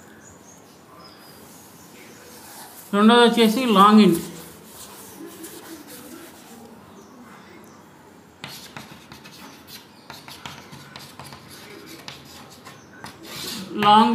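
Chalk taps and scratches on a board.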